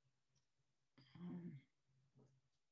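An older woman speaks briefly and quietly over an online call.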